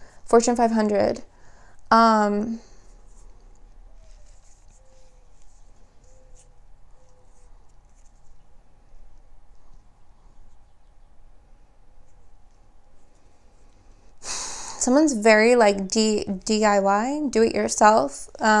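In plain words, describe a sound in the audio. A young woman speaks calmly and closely into a microphone, pausing at length.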